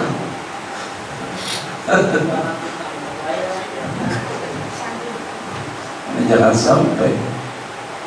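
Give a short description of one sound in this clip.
A man laughs through a microphone.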